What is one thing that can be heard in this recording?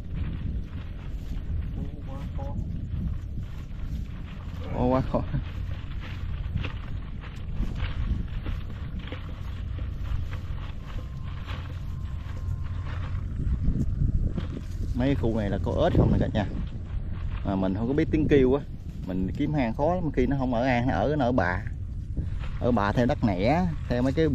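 Wind blows across open ground outdoors.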